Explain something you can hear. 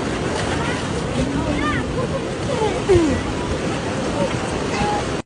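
Sea water washes and splashes steadily outdoors.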